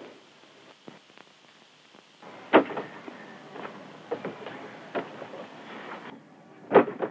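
Footsteps echo on a hard floor.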